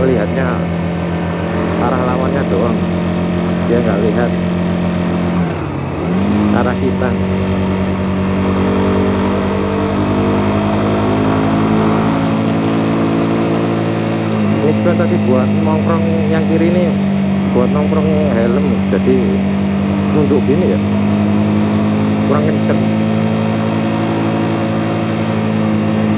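A motorcycle engine hums steadily while riding, briefly dropping and rising in pitch during a gear change.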